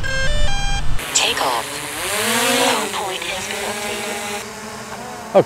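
A drone's propellers whir as it takes off.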